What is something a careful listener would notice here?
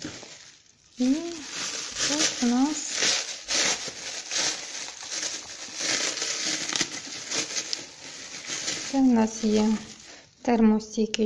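Plastic bubble wrap crinkles and rustles as it is unwrapped.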